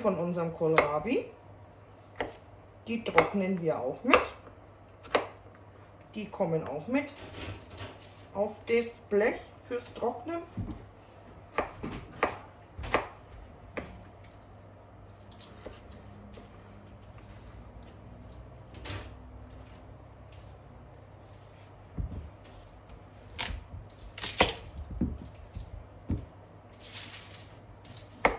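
A knife chops vegetables on a wooden cutting board with sharp knocks.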